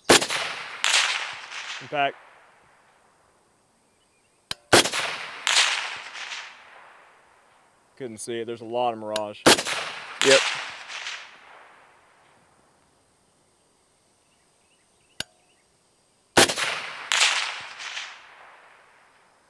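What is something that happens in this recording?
A rifle fires loud shots outdoors, each echoing away across open ground.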